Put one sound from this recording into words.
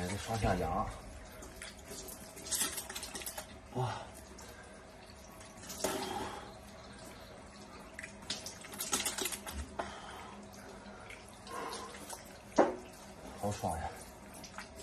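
A man splashes water onto his face.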